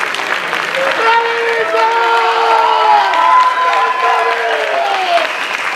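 Several young women and men cheer and whoop loudly.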